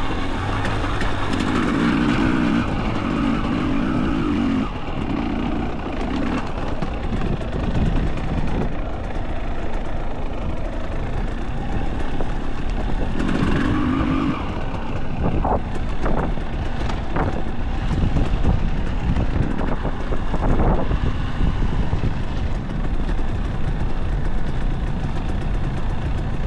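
A dirt bike engine rumbles and revs close by.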